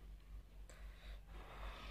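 A young woman sips a drink from a mug.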